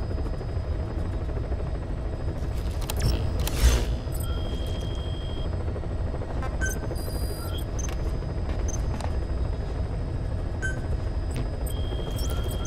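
Short electronic beeps chirp as menus open and close.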